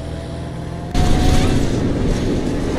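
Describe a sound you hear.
Rain patters on bus windows.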